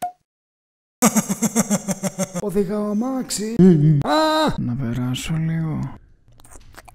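A man laughs loudly and wildly.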